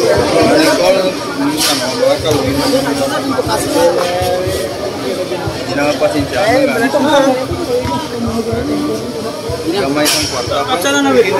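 Several young men talk over one another close by, outdoors.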